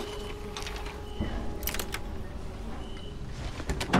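A lock pick scrapes and clicks inside a lock.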